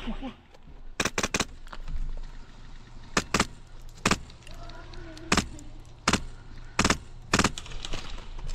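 Rifle shots crack sharply one at a time, outdoors.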